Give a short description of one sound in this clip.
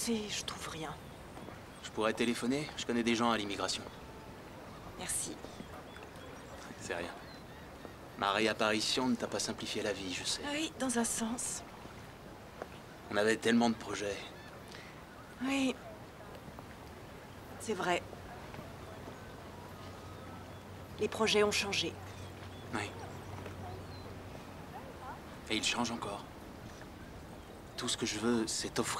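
A man talks calmly and warmly up close.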